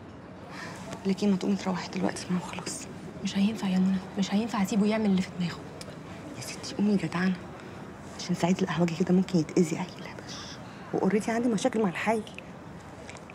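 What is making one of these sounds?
A woman speaks tensely and quietly, close by.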